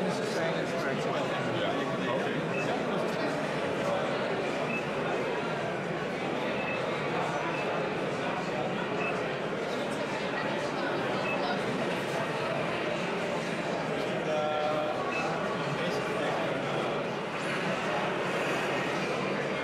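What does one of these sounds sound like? Game music and sound effects play from a loudspeaker.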